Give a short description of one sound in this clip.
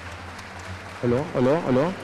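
An orchestra starts playing loudly.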